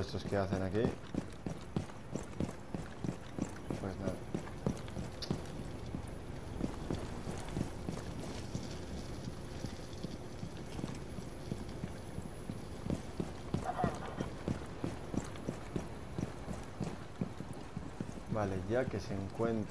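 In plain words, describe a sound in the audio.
Footsteps run quickly over hard ground.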